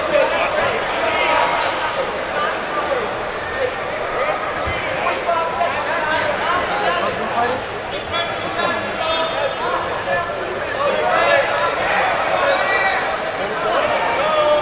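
A crowd of many voices chatters and shouts in a large echoing hall.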